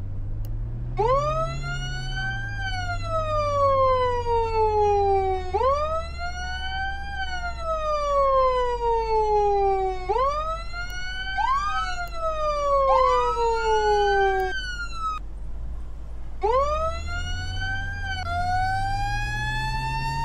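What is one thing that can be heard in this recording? A siren wails, rising and falling over and over.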